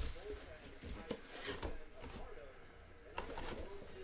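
Plastic wrap crinkles in a hand.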